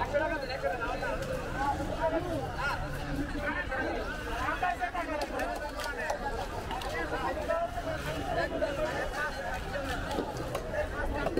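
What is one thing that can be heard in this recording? Many men's voices chatter and call out close by.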